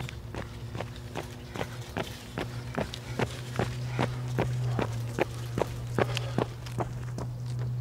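Running footsteps slap on pavement close by, then pass.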